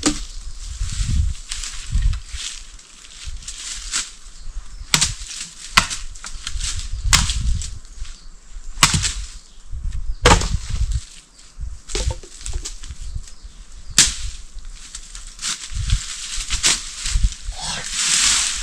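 Leaves and twigs rustle and crunch underfoot.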